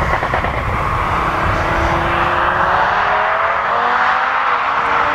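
A car hums steadily as it approaches from far off.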